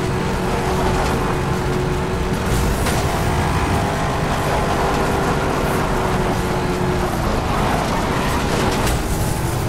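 A powerful car engine roars at high speed.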